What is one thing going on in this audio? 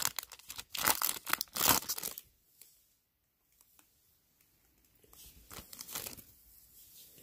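Foil card packs crinkle and rustle in a hand.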